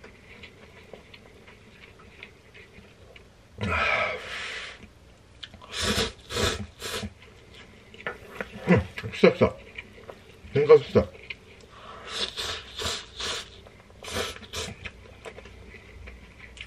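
A man chews noisily.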